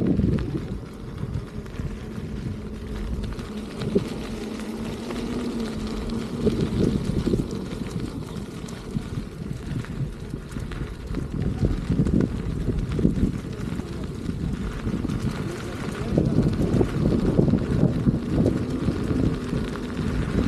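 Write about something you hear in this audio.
Wind rumbles and buffets against a moving microphone outdoors.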